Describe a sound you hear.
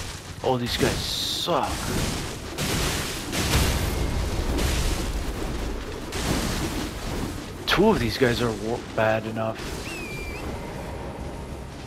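A blade swings and strikes with heavy thuds.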